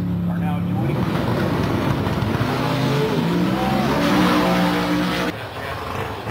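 A race car roars away at full throttle, rising in pitch.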